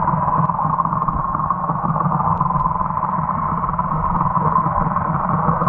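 Water churns and rumbles with a muffled, underwater sound.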